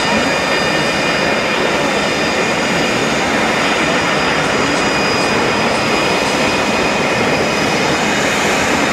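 A large crowd cheers and murmurs outdoors.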